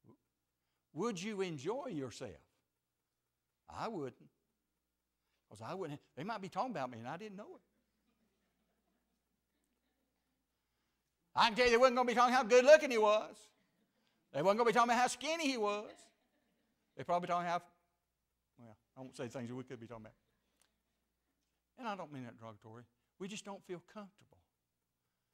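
An elderly man speaks calmly into a microphone, with pauses between phrases.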